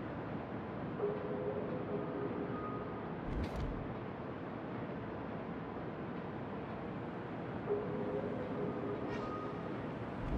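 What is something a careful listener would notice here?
Water rushes and splashes along a ship's hull.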